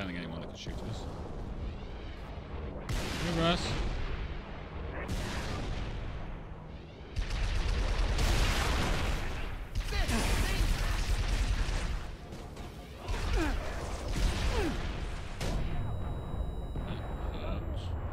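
A man talks into a microphone with animation, close by.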